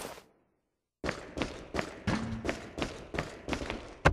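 Footsteps clank steadily on a metal floor.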